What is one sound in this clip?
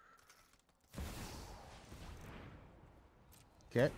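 A magical whoosh sounds as a card is played.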